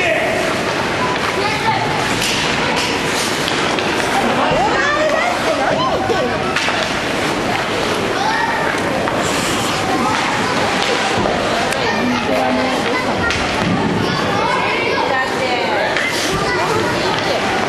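Skates scrape and hiss on ice.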